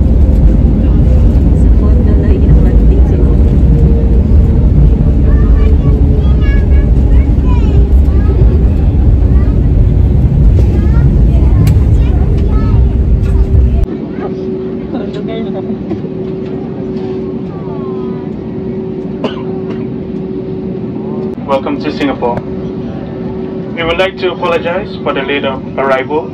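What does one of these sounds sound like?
Jet engines roar steadily inside an airplane cabin, then quieten to a lower hum.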